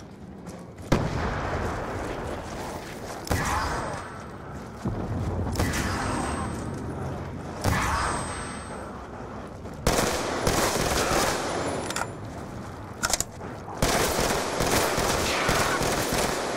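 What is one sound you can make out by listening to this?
Gunshots ring out in quick bursts.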